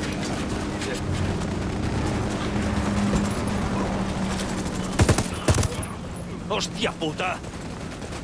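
A helicopter engine drones steadily, then fades.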